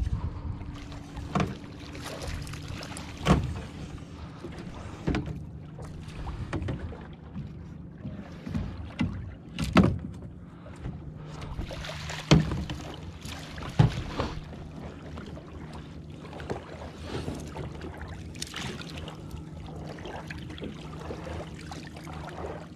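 A boat motor hums steadily close by.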